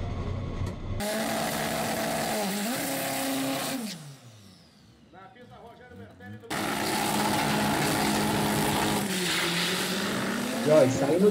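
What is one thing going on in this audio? A race car engine revs hard and roars loudly.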